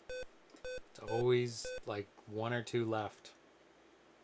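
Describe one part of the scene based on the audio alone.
A man talks casually.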